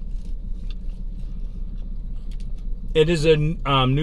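An elderly man chews food noisily.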